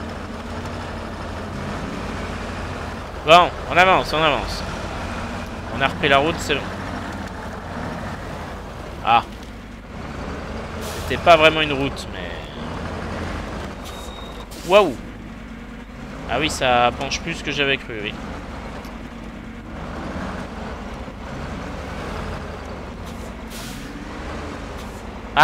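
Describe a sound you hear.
A heavy truck engine rumbles low and steady as it crawls over rough ground.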